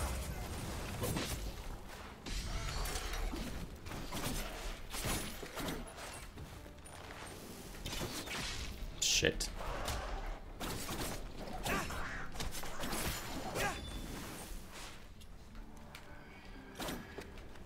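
Swords swish and clash in quick strikes.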